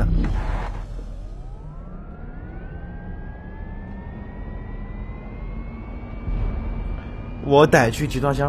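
A car engine hums and rises in pitch as it speeds up.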